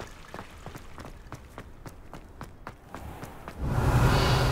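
Quick footsteps run across stone paving.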